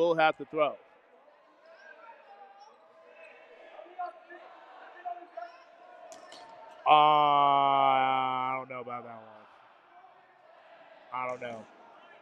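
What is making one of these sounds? Young men shout to each other across a large echoing gym.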